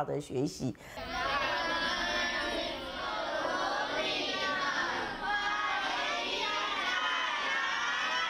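A large group of children sing together outdoors.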